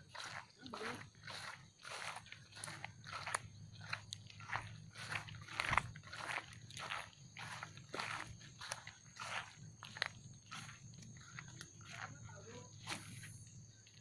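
Footsteps rustle steadily through grass and low plants.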